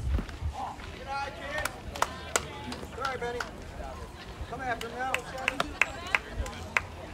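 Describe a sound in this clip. Young men shout across an open field outdoors.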